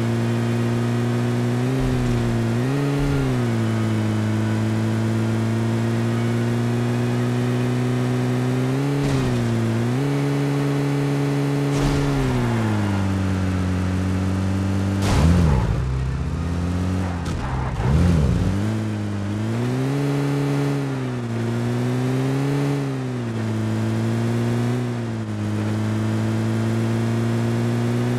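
A vehicle engine hums steadily, rising and falling in pitch as it speeds up and slows.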